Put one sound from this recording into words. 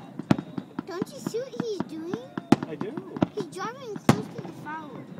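Fireworks crackle as sparks spread out.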